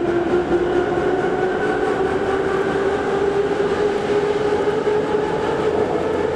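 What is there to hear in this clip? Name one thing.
A subway train rumbles and whines loudly along the tracks.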